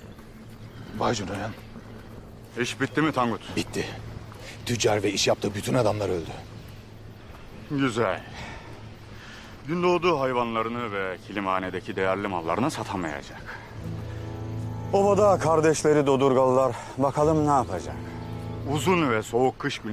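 A man speaks firmly and tensely nearby.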